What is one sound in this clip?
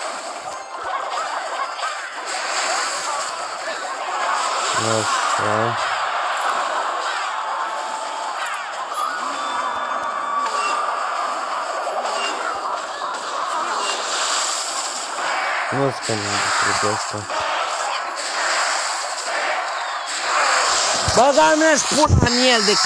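Video game battle effects clash, zap and crackle throughout.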